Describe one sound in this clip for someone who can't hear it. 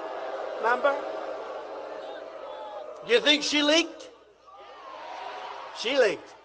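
A man speaks loudly and forcefully into a microphone, echoing through a large arena.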